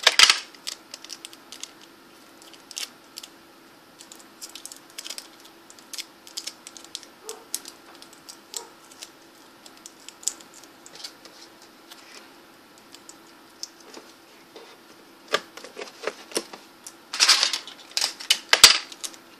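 Small objects rustle and click in a child's hands close by.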